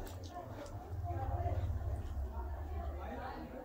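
A young woman gulps water from a metal cup.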